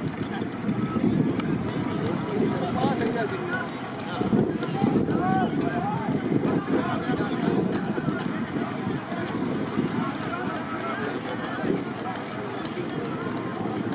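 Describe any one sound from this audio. A large outdoor crowd murmurs and calls out.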